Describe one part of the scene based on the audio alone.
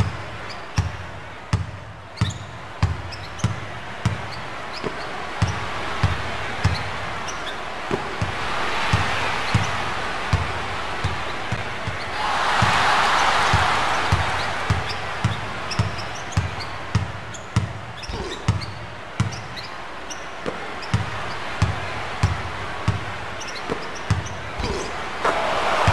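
A basketball is dribbled on a hardwood court.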